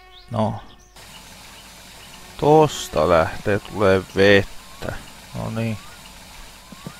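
Water pours from a shower head into a bucket.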